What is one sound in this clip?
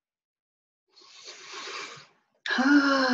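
A woman breathes in and out deeply.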